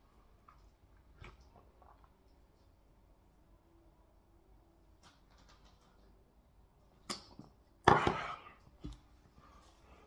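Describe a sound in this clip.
A man sips and gulps a drink loudly.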